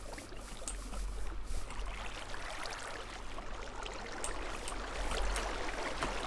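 Water flows and trickles steadily.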